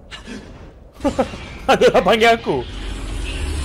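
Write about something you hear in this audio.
A young man exclaims excitedly into a close microphone.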